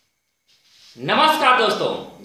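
A young man speaks close to the microphone with animation.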